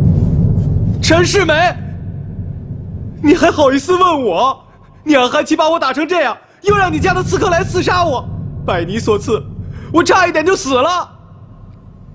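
A young man speaks agitatedly, his voice strained.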